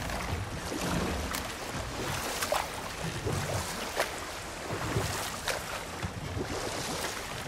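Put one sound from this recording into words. Paddles splash and dip in water.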